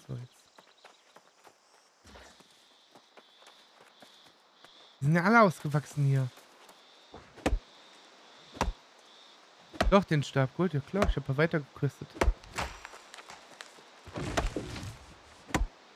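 Footsteps rustle through dense undergrowth.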